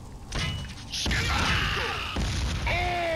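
A blast booms nearby.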